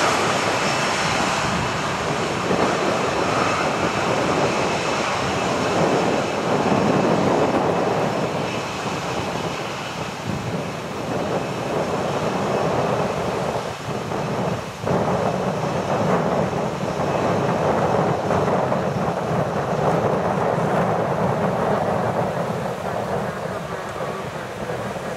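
A jet airliner's engines roar loudly as it rolls along a runway.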